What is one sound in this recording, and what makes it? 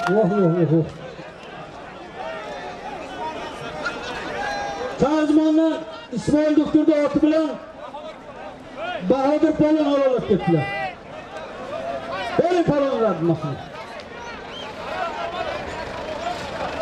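A large outdoor crowd of men murmurs and chatters.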